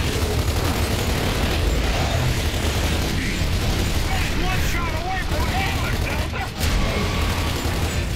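Rifles fire in rapid bursts.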